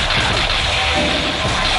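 Crackling energy roars loudly.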